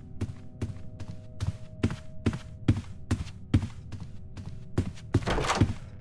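Quick footsteps thud on a wooden floor.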